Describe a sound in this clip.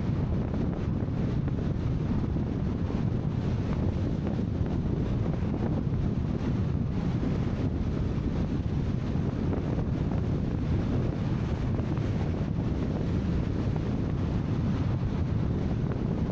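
Wind roars steadily against a fast-moving car.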